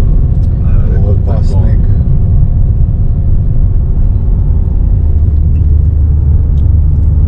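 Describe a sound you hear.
Tyres rumble over a snowy road.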